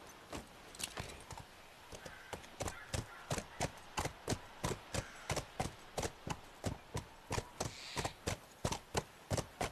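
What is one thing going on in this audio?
A horse's hooves clop steadily on the ground.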